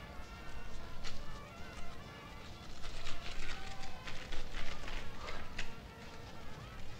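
Playing cards flick and riffle in a man's hands.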